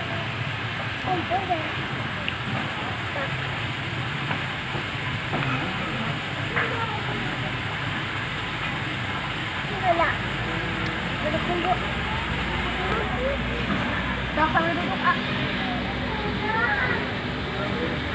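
Young children talk and babble softly nearby.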